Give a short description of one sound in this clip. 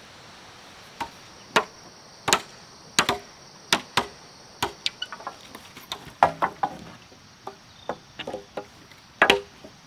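Wooden poles knock and clatter against each other.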